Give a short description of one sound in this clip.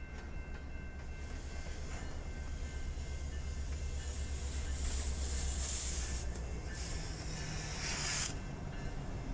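Steel wheels clatter and squeal on rails.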